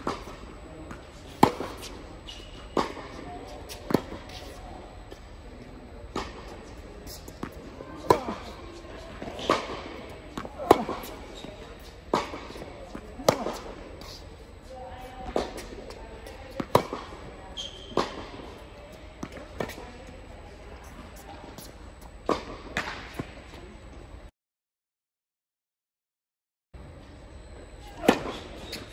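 Tennis balls bounce on a hard court.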